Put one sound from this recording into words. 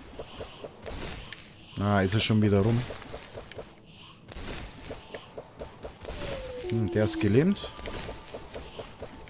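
Quick slashing and hitting sounds from a game repeat steadily.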